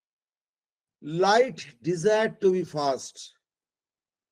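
An older man speaks calmly over an online call.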